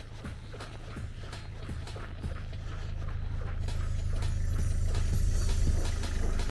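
Tyres crunch over packed snow.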